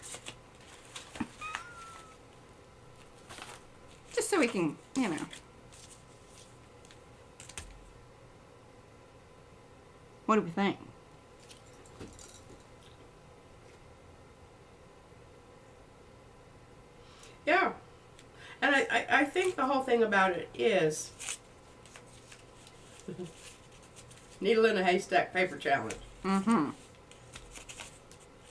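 Paper rustles as hands handle it.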